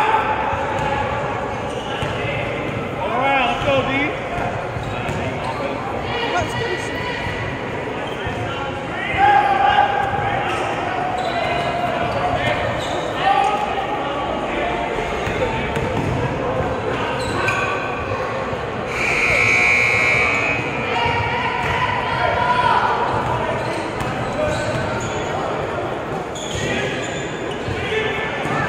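Spectators shout and cheer in an echoing hall.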